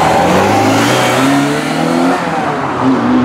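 A sports car engine roars loudly as the car accelerates away.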